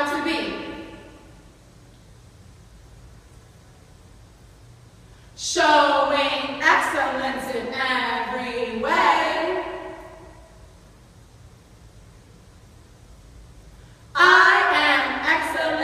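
Two young girls chant together with animation in an echoing hall.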